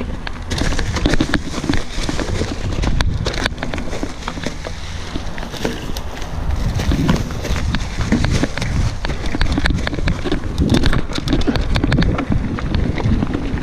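Wind rumbles past the rider, outdoors.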